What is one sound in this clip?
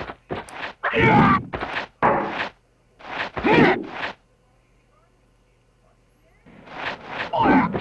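Metal blades clash and swish in a sword fight.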